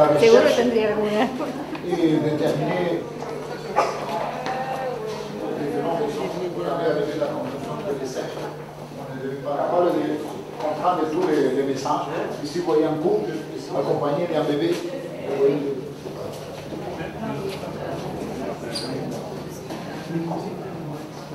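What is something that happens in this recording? A crowd of men and women chatter in an echoing room.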